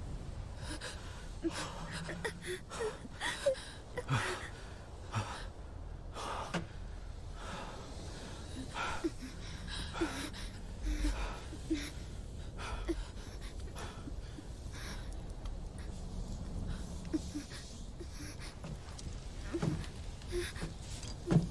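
A young woman breathes heavily and whimpers in fear close by.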